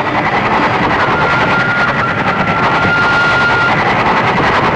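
A train horn sounds a long steady blast.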